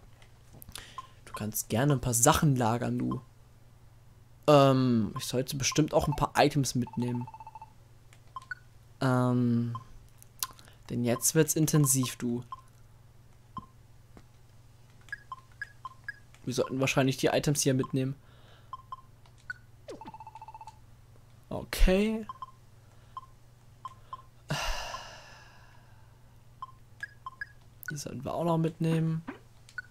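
Short soft menu blips sound again and again as a cursor moves through a list.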